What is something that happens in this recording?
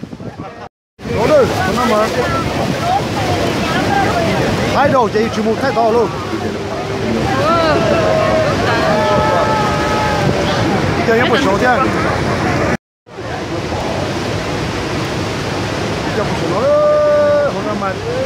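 A huge waterfall roars nearby.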